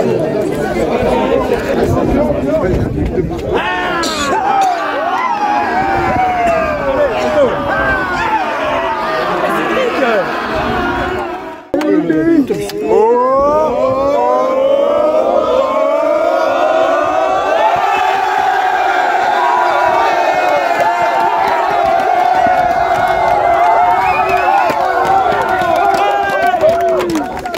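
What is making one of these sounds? A crowd of young men cheers and shouts loudly outdoors.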